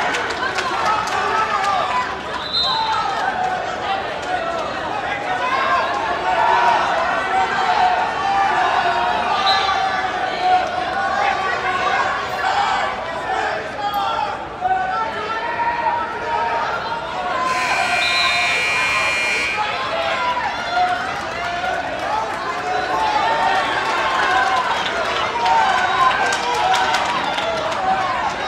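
Men shout from the sidelines in an echoing gym.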